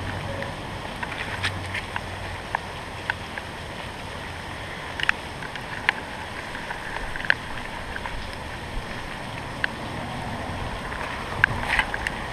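Dry leaves rustle softly as a snake slithers through them.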